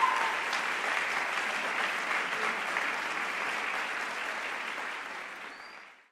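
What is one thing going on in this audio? A large choir of young women sings in an echoing hall, and the sound slowly fades away.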